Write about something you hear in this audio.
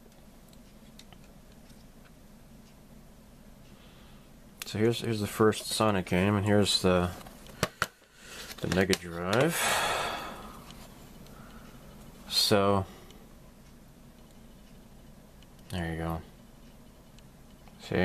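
Small plastic cartridges click and rattle as hands handle them.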